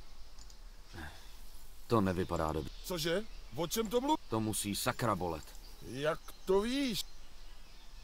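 A man speaks calmly in a low voice.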